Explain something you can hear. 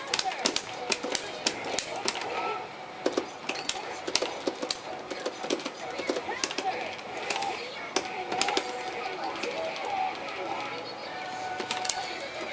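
Sharp hits and slashes crack repeatedly in a fighting game.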